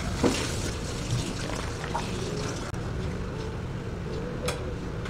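Ice cubes crackle and clink in a plastic cup.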